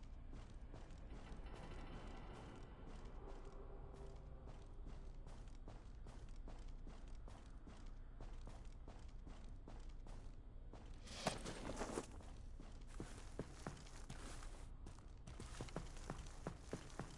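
Footsteps tread quickly and steadily on a hard floor.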